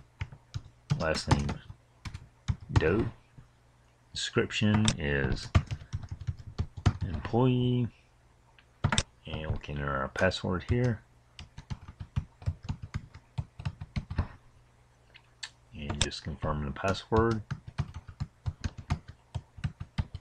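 Keyboard keys click rapidly as someone types.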